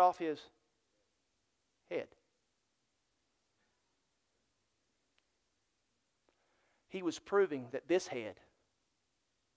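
A middle-aged man speaks calmly through a microphone in a large room, pausing between phrases.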